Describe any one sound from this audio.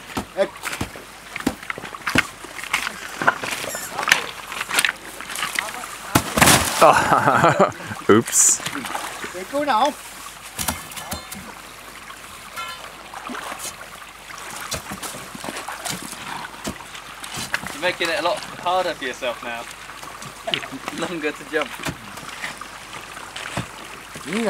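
A pole knocks against ice.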